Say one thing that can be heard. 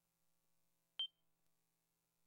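A short electronic beep sounds once.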